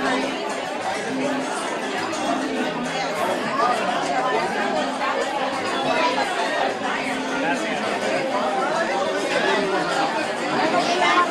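A crowd of men and women chatters loudly all around in a busy room.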